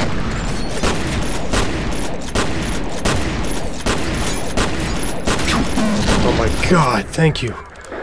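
A gun fires rapid bursts of shots that echo down a hall.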